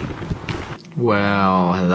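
A young man speaks close up.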